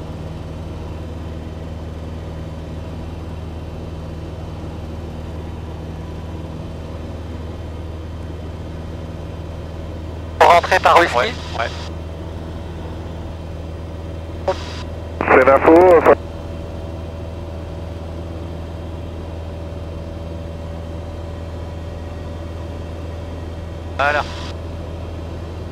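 A small plane's engine drones steadily from inside the cockpit.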